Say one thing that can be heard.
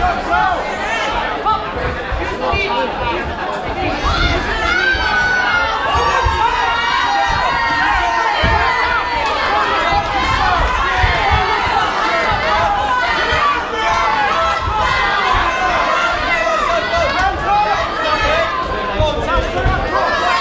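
A crowd shouts and cheers loudly in a large echoing hall.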